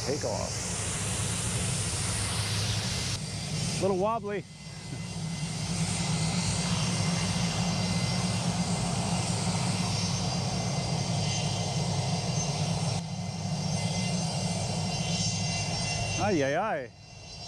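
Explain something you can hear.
A jet engine roars steadily in the distance.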